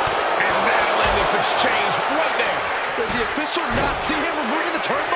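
Bodies thud heavily onto a wrestling ring.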